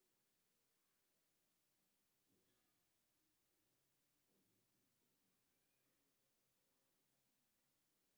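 Metal bangles clink softly.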